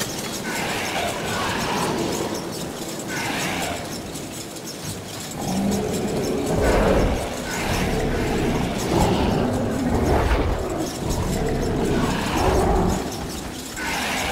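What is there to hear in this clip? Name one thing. Wind howls outdoors in a storm.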